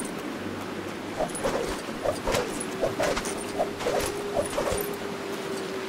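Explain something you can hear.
Small items jingle and clink as they are picked up.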